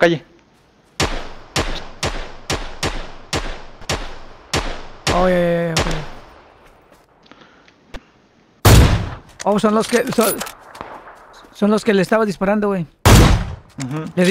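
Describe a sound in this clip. Rifle shots crack in quick succession.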